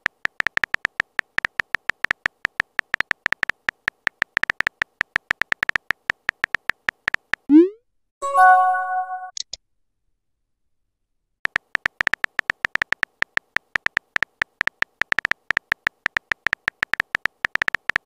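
Rapid keyboard taps click in quick bursts.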